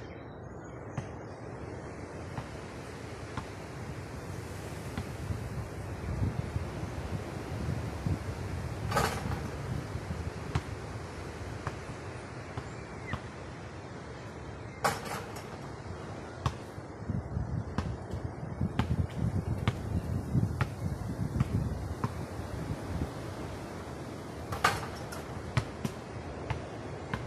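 A basketball bounces on hard ground outdoors.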